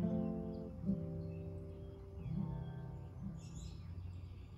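An acoustic guitar plays a few notes outdoors.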